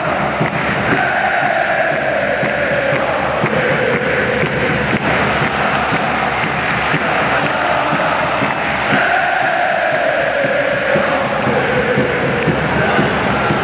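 A stadium crowd sings a chant in unison.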